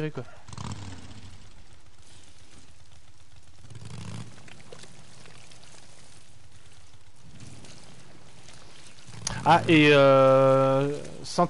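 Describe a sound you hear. A motorcycle engine idles and putters.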